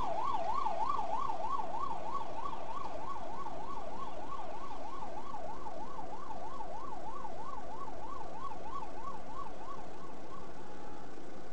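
A siren wails rapidly up and down close by.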